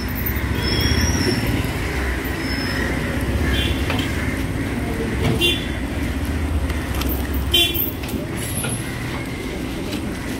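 Several men talk and call out nearby outdoors.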